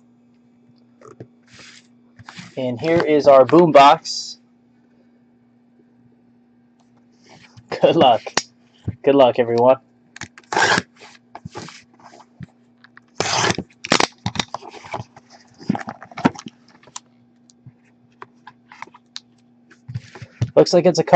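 Cardboard packaging rustles and scrapes as a box is handled and opened.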